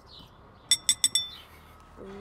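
A spoon clinks against a glass.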